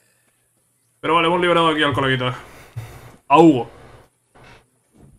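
A man speaks loudly and forcefully, close by.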